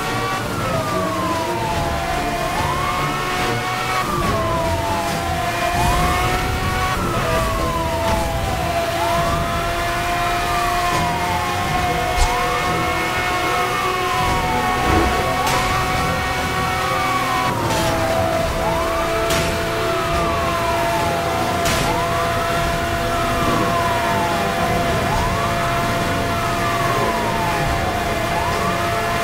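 A police siren wails in a rising and falling sweep.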